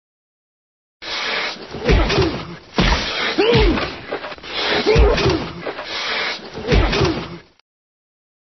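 Heavy blows thud and squelch again and again.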